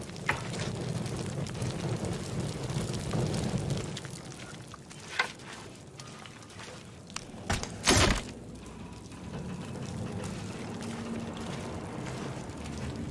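Footsteps crunch on stony ground.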